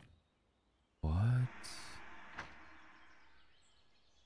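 A paper page rustles as a book flips open.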